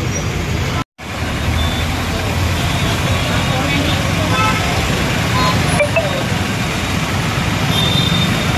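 Road traffic rumbles past steadily.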